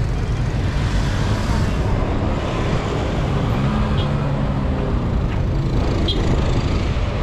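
Wind rumbles loudly, outdoors.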